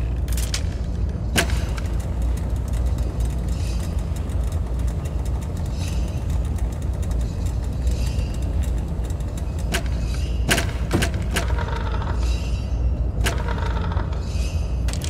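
Large metal gears turn with a deep mechanical rumble and occasional clanks.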